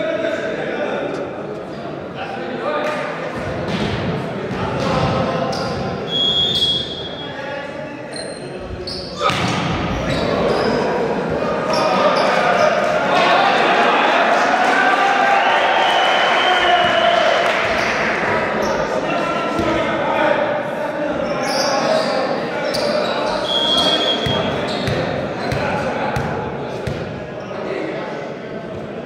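Men's voices chatter and echo in a large hall.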